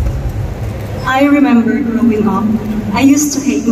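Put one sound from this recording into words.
A young woman speaks calmly into a microphone over a loudspeaker.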